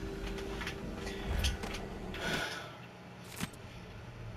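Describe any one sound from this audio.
Clothing rustles as a limp body is hoisted onto a shoulder.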